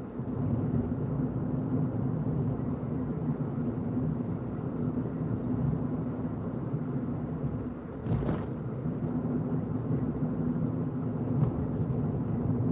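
A car engine hums steadily while driving along a road.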